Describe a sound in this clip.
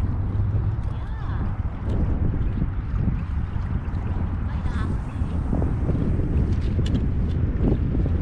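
A man reels in a fishing line.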